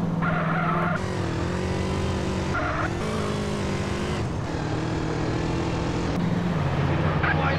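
A motorcycle engine revs and hums.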